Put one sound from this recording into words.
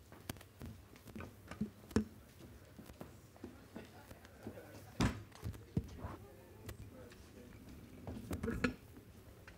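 Footsteps knock on a wooden stage.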